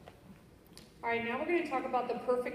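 A woman speaks through a microphone and loudspeakers in a large echoing hall.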